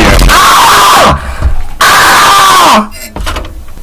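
A young man screams loudly and harshly into a microphone.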